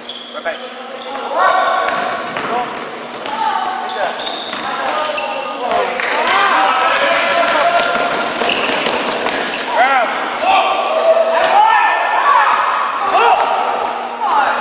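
A basketball bounces on the court with hollow thuds.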